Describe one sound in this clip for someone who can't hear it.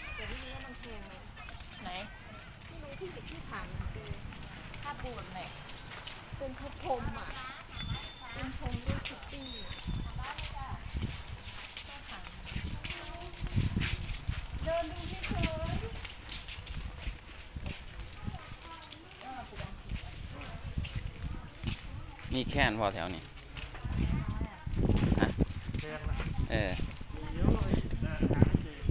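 People talk nearby and in the distance outdoors.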